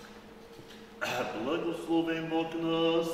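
An elderly man sings loudly in a large echoing hall.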